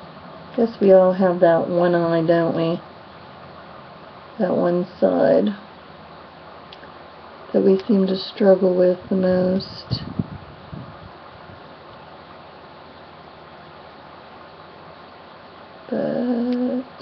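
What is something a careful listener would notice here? A woman talks calmly and close to a microphone, in short bursts.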